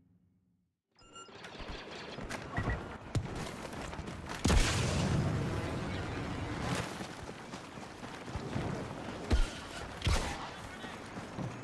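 Battle noise roars with sharp blasts and heavy booms.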